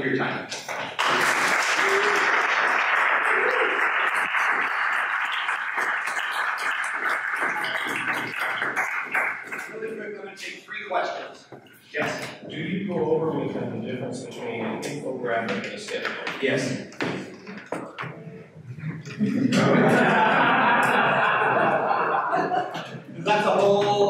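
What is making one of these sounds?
An audience murmurs and laughs.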